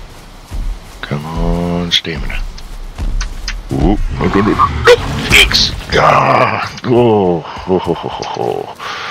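A large creature groans with a deep, bending moan.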